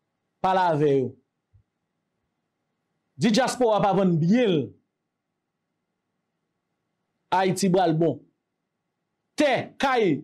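A man speaks emphatically into a close microphone, in short bursts with pauses.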